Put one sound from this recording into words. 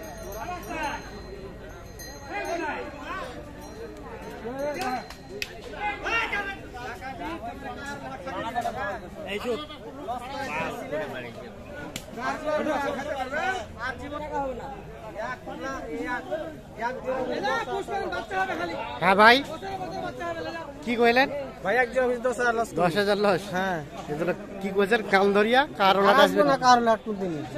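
Several men talk at once nearby, outdoors.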